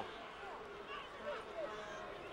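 A rugby ball is kicked with a dull thud.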